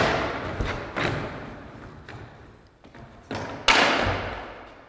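A skateboard slaps and clacks against a wooden ledge, echoing in a large room.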